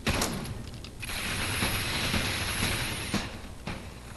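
An energy gun fires with a sharp zap.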